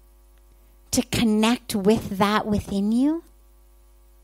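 A woman speaks calmly and with expression through a microphone.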